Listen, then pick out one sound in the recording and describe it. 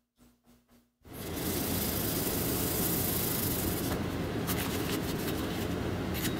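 A blade scrapes against plastic sheeting.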